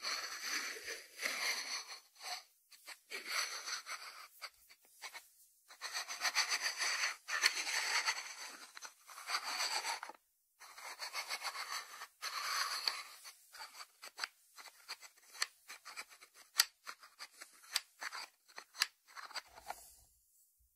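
Fingertips rub and brush across a ceramic lid.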